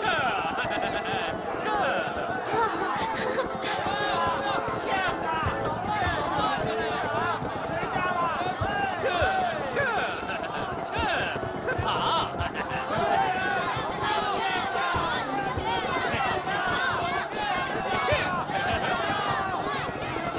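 A crowd of men shouts and cheers excitedly.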